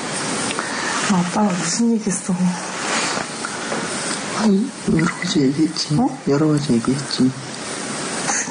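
A man talks quietly and sleepily.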